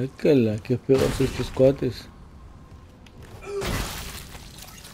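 Heavy boots stomp down with wet, squelching thuds.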